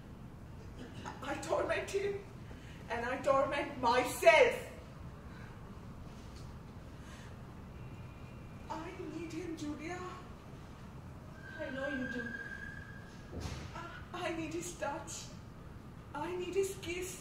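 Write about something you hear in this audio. A woman speaks expressively in a room with a slight echo.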